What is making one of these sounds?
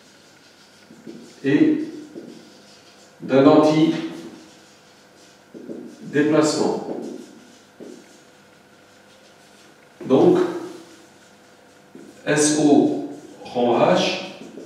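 An elderly man speaks calmly in short phrases, reading aloud.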